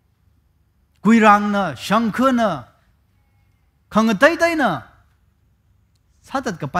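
A man speaks calmly and expressively through a headset microphone, with pauses between phrases.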